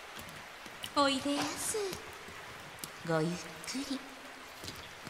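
Young women greet softly in unison.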